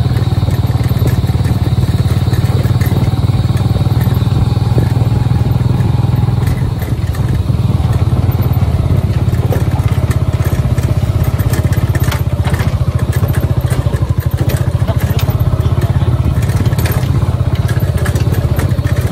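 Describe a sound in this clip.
Wheels rattle and bump over a rough dirt track.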